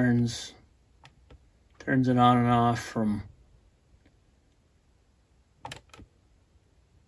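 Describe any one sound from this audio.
A small plastic button clicks several times.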